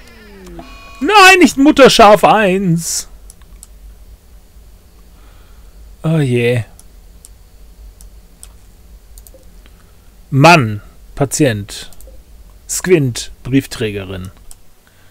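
An older man talks with animation into a close microphone.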